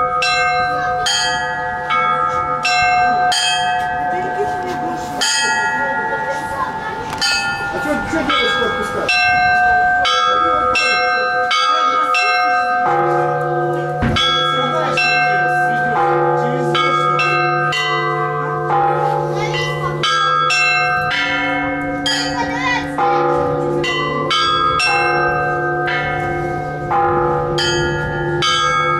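A deep bell tolls and hums steadily.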